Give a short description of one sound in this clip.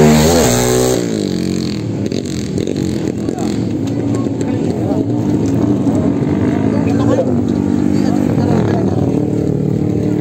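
A drag-racing motorcycle engine idles.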